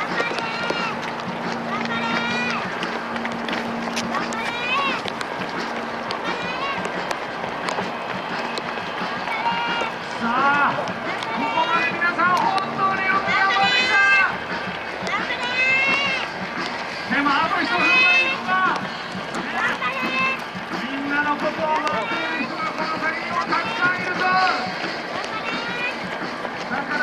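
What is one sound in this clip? Many runners' footsteps patter on a paved road.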